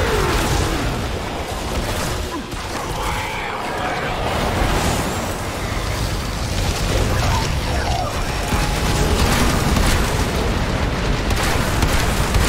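Low rumbling explosions roll on throughout.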